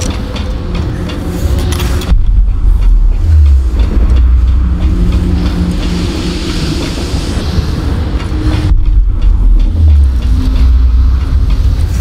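Footsteps thud on a metal deck.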